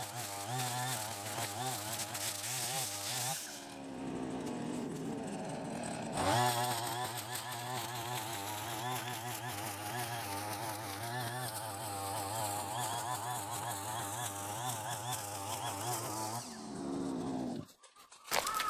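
A brush cutter's engine whines steadily while cutting grass.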